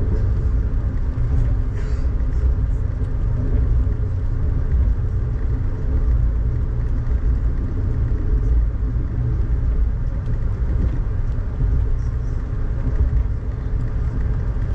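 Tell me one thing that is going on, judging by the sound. Raindrops patter against a window.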